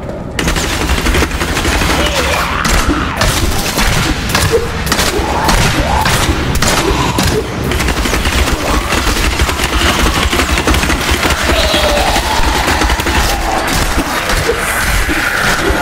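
Spell blasts burst and crash again and again.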